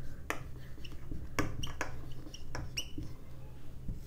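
A marker squeaks and taps against a whiteboard.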